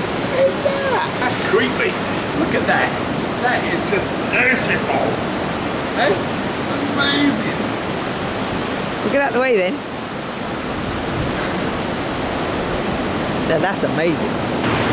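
Waves roar and break steadily.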